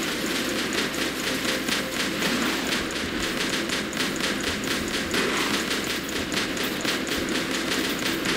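Guns on a walking robot fire in a fast, steady burst.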